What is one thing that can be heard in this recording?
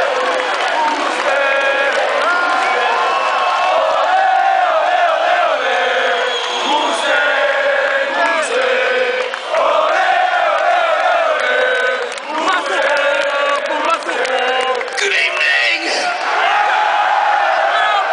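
A crowd sings along loudly, heard from among them outdoors.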